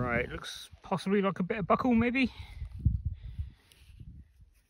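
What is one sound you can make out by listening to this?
Fingers rub and crumble damp soil close by.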